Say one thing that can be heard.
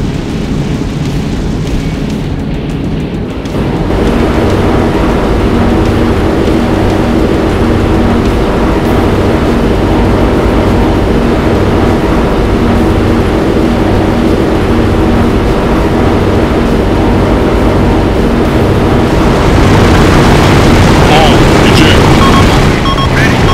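A four-engine turboprop transport plane drones in flight.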